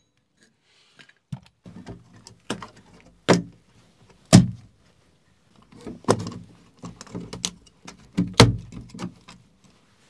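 A plastic box clicks and knocks as hands press it into a wall.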